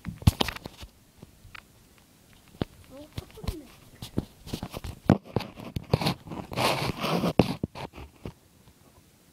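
A young boy talks close to a phone microphone.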